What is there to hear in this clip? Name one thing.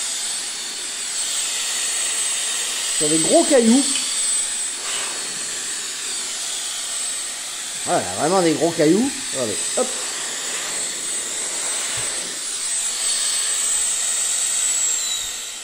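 A small electric air blower whirs with a steady high whine.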